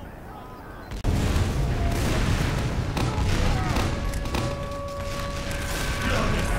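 A heavy rotary gun whirs and rumbles loudly.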